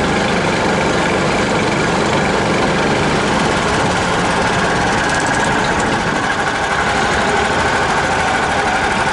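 Tyres roll over grass and branches.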